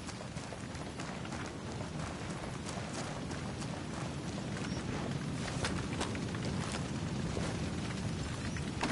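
A vehicle engine rumbles close by.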